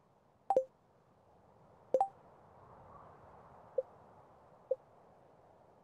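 Short electronic clicks and pops sound as a game menu opens and its pages change.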